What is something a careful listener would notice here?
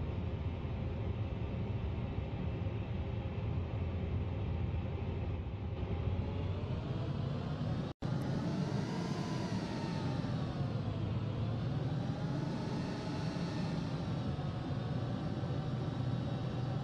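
The engines of a twin-engine jet airliner whine and rumble as it taxis.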